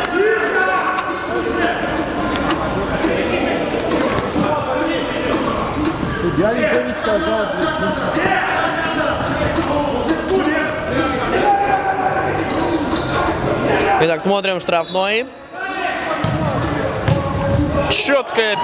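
A ball thuds as it is kicked across a hard floor.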